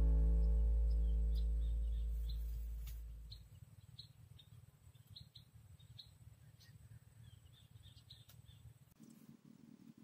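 Leaves rustle softly as a person picks from a bush.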